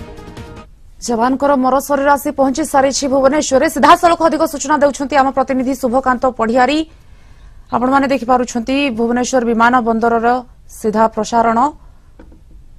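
A woman reads out the news calmly through a microphone.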